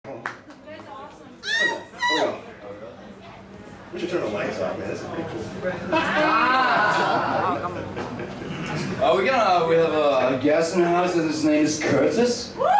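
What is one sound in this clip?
An electric bass guitar plays a low line.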